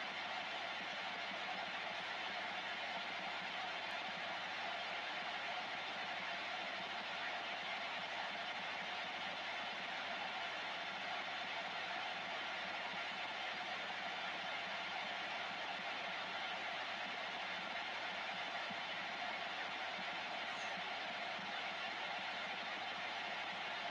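Static hisses steadily from a radio receiver's loudspeaker.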